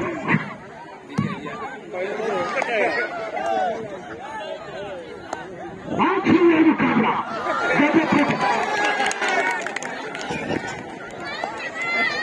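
A large outdoor crowd of men and boys chatters and calls out.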